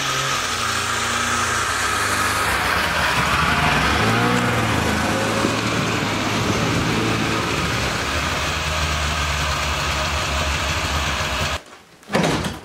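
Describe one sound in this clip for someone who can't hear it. A snowmobile engine roars close by as it drives past.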